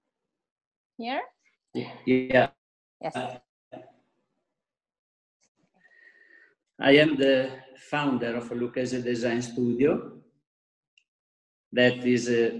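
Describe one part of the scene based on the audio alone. A middle-aged man speaks with animation over an online call.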